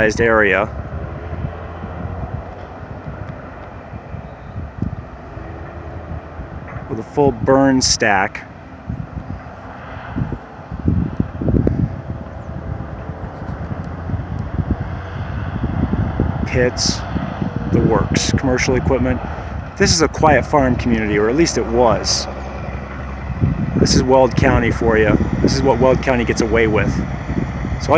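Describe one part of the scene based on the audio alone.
Wind gusts and rumbles outdoors.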